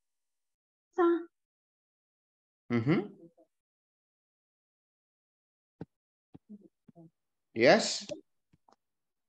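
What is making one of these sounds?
A young man speaks in short bursts over an online call.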